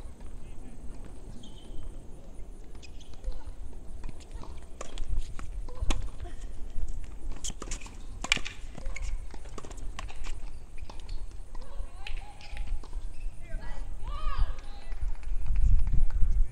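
Tennis balls are struck with rackets, with sharp pops outdoors.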